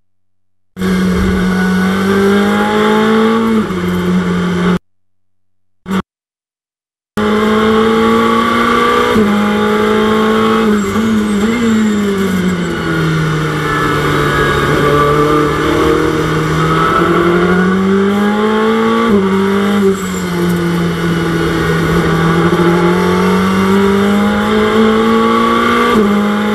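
A race car engine roars, its pitch rising and falling as it shifts gears.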